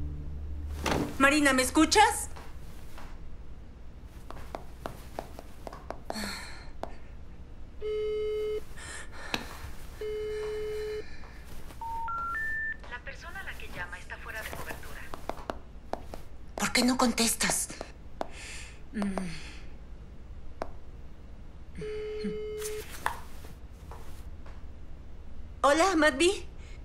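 A young woman speaks into a phone.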